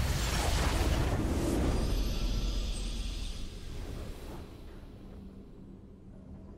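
A triumphant game fanfare blares and fades out.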